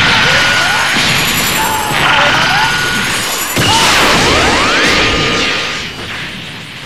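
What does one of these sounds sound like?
A loud blast explodes and rumbles.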